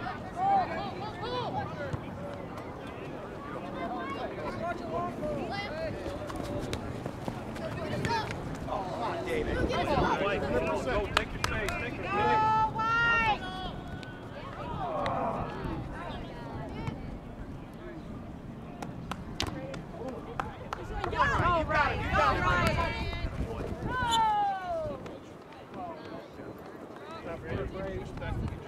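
Young female players shout and call out to one another outdoors on an open field.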